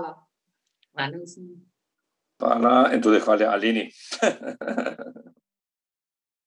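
A man speaks cheerfully over an online call.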